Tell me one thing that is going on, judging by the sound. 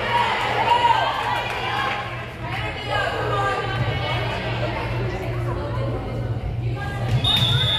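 Young women call out and chatter in a large echoing gym.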